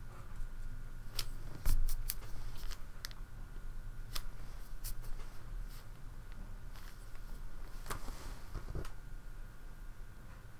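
A brush dabs and taps softly on paper.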